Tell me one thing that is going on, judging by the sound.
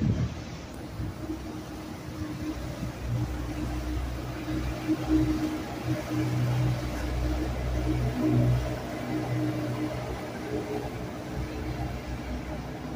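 A small outboard motor buzzes steadily close by.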